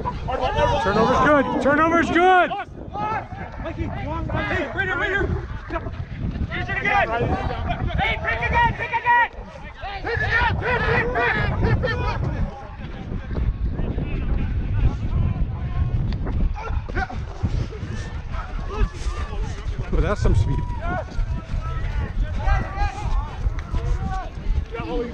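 Young men shout and call out to each other close by.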